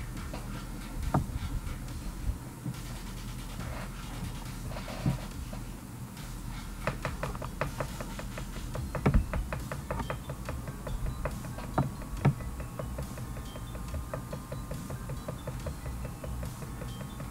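A young man speaks quietly and close to a microphone.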